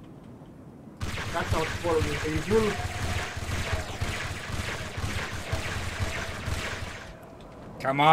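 Gunfire rattles steadily.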